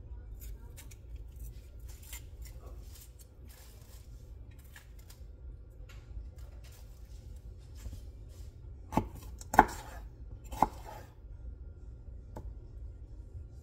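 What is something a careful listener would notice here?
A knife chops vegetables on a wooden cutting board.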